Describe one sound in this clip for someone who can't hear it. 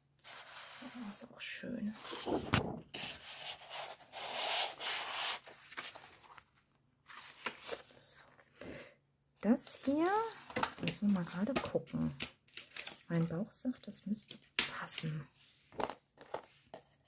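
Sheets of paper rustle and flap as they are leafed through.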